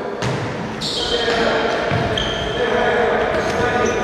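A ball is kicked hard on an indoor court.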